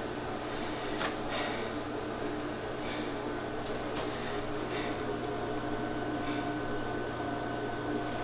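A young man speaks quietly close by.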